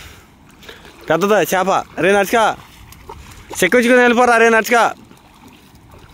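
A boy splashes as he runs through water.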